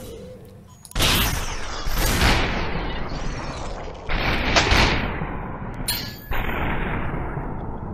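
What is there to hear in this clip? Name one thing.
Glass shatters into pieces.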